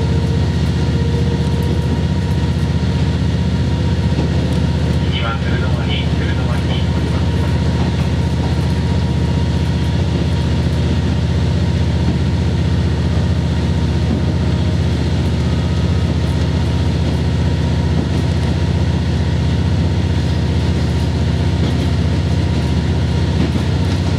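Wheels rumble on the rails under a moving railcar.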